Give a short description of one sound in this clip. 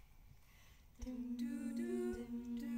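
A choir of young women sings together in harmony through microphones in a hall.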